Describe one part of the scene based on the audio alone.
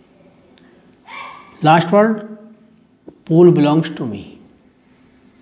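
A middle-aged man reads aloud calmly and close to the microphone.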